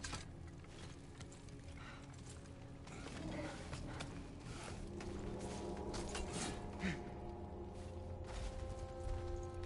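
Heavy footsteps shuffle and scrape over rocky ground.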